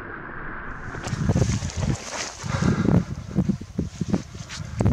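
Clothing and grass rustle as a man sits down.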